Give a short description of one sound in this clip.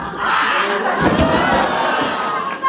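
A body thuds heavily onto a wrestling mat.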